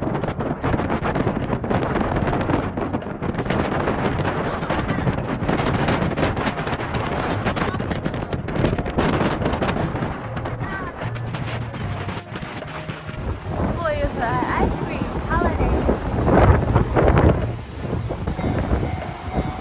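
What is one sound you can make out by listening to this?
Strong wind gusts and buffets outdoors.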